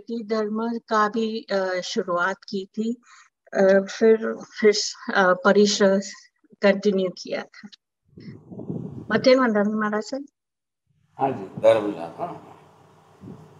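An elderly man speaks calmly through a microphone over an online call.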